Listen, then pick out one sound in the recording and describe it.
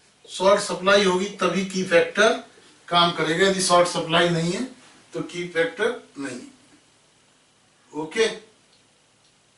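A man lectures loudly and with animation close to a microphone.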